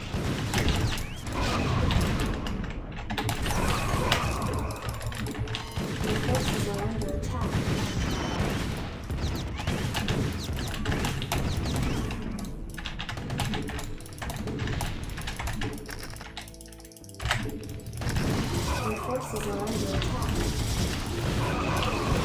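Gunfire and explosions crackle from a video game.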